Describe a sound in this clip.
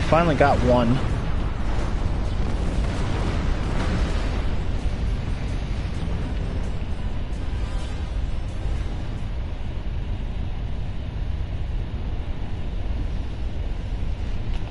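A spaceship's engines rumble steadily.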